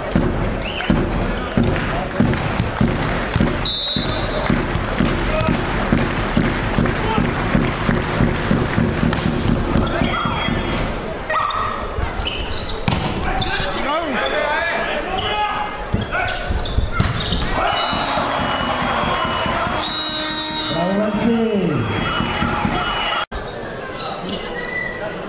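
A volleyball is struck with sharp smacks in a large echoing hall.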